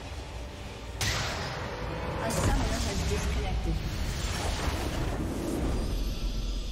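Magic spells burst and crackle in a loud flurry.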